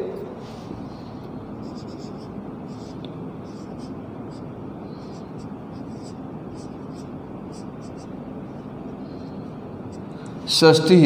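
A marker squeaks and taps softly on a whiteboard.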